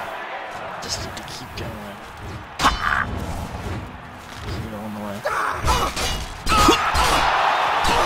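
A sword strikes with sharp metallic clangs.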